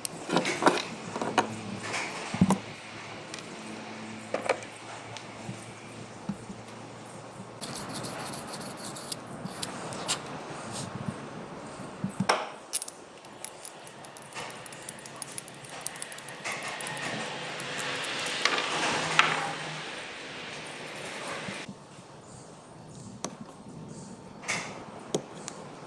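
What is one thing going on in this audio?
Metal engine parts clink and tap as they are handled.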